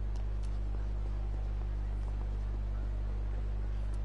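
Footsteps patter quickly on pavement.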